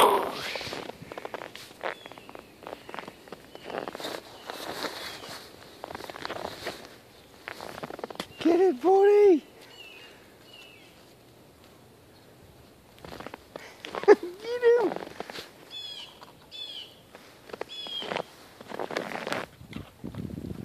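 A dog digs and snuffles in crunching snow.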